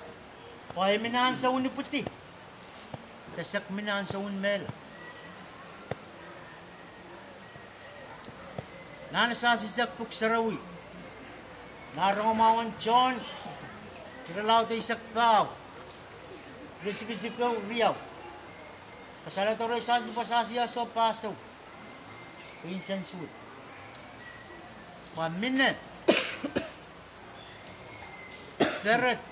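A middle-aged man speaks calmly in short phrases with pauses, outdoors.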